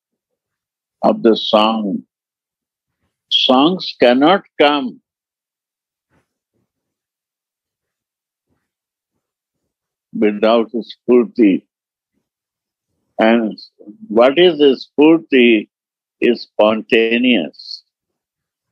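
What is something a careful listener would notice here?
An elderly man speaks calmly in short phrases, heard over an online call.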